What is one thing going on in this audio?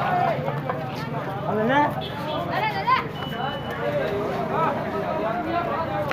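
Several men and women talk and call out loudly nearby.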